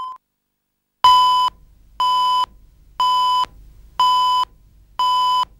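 Short high beeps sound once every second, counting down.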